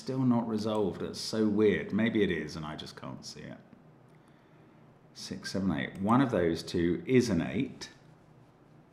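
An elderly man speaks calmly and thoughtfully into a close microphone.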